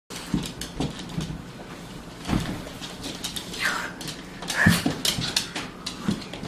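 A body thumps and slides on a wooden floor.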